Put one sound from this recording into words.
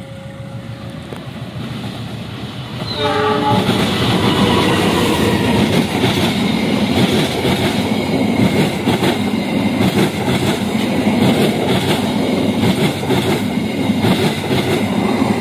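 A train approaches and rushes past close by with a loud roar.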